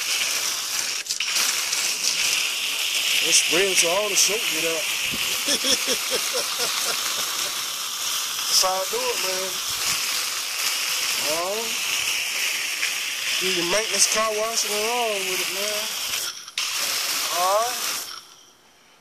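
A hose sprays water hard against a truck's metal side with a steady hiss.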